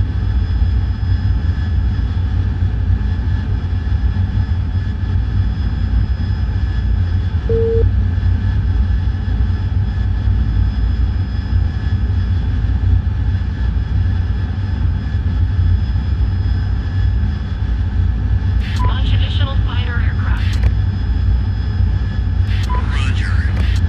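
A jet engine drones steadily with a deep rumble.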